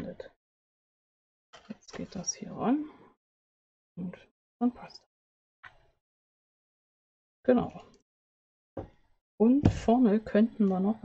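A woman talks calmly into a microphone, in short bursts with pauses.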